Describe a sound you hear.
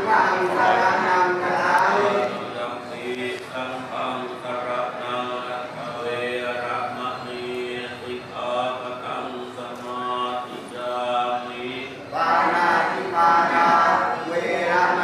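A group of men and women chant together in unison.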